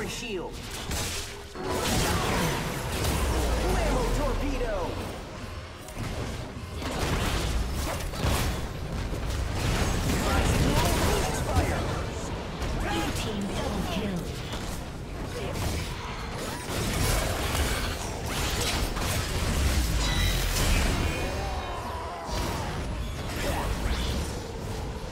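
Video game spell and combat effects clash and burst.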